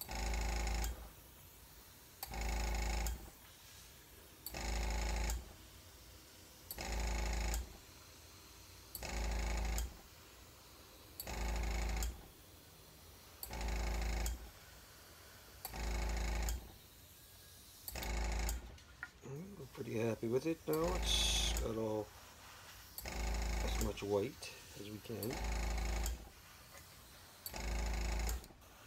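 An airbrush hisses in short, regular bursts.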